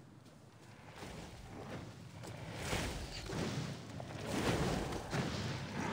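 Fiery magic blasts whoosh and crackle.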